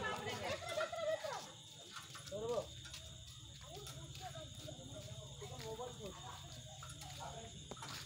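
Women and children chatter nearby.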